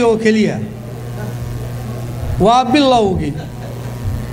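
An elderly man speaks slowly into a microphone, heard through a loudspeaker.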